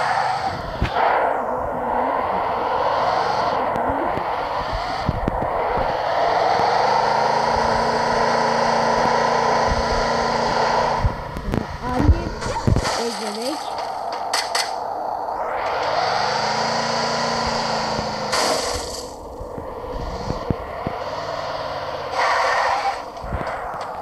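A truck engine roars and revs while driving over rough ground.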